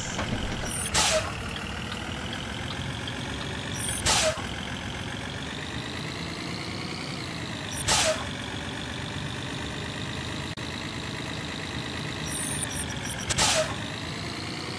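A windshield wiper squeaks and thumps at intervals.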